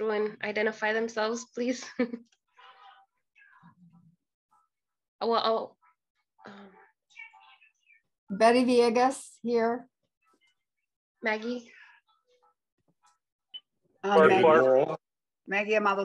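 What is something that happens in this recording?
A woman speaks calmly in bursts, heard through an online call.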